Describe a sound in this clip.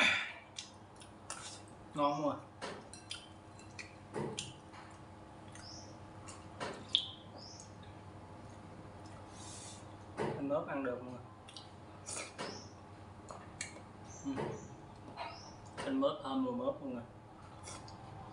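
A man chews and slurps food close by.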